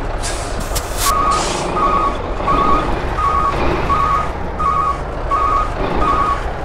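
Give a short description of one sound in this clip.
A reversing alarm beeps steadily.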